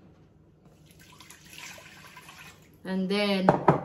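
Powder pours softly from a scoop into a pot.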